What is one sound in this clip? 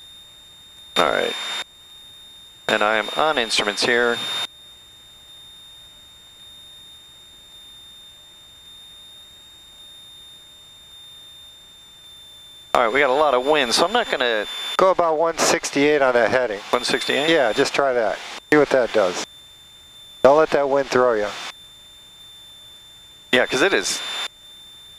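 An older man talks with animation through a headset intercom.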